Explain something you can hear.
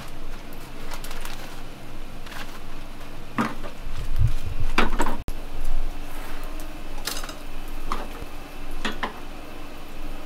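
Metal utensils clink and clatter.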